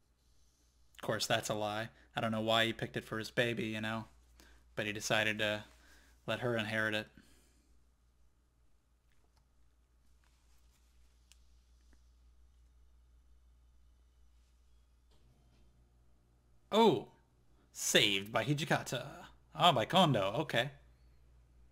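A young man speaks casually and close to a microphone, pausing between phrases.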